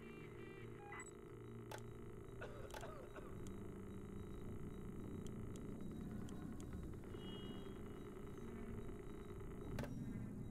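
A computer terminal beeps softly as options are selected.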